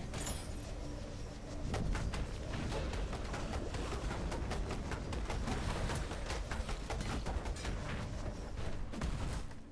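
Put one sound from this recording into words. Weapon strikes land in rapid succession.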